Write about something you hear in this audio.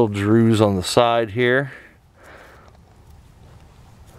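Dry twigs rustle as a hand pushes them aside.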